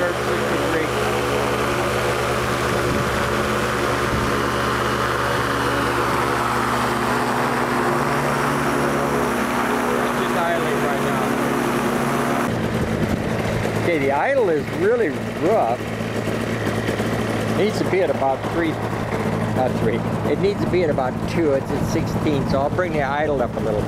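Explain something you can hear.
A small engine idles with a steady, loud drone.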